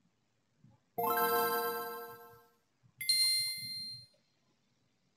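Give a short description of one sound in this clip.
A game console plays a bright startup chime.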